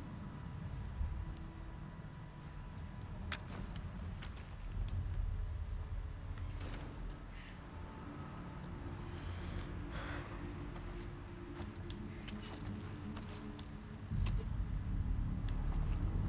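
Footsteps creep softly over a hard floor.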